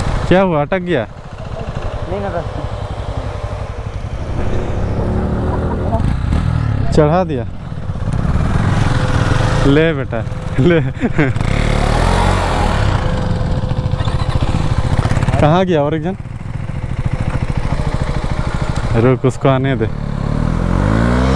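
Motorcycle engines rumble and putter close by.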